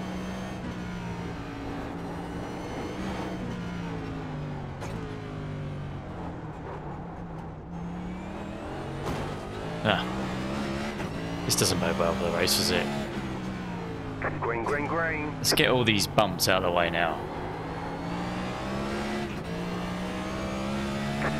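A race car engine drones steadily, its pitch rising and falling as the car speeds up and slows down.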